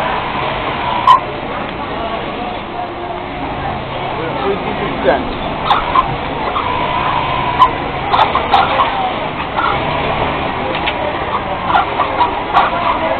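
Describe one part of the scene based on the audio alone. Sewing machines whir and clatter steadily in a noisy room.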